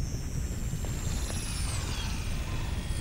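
An electric bolt crackles and zaps sharply.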